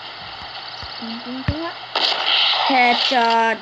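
A young boy speaks close to a microphone.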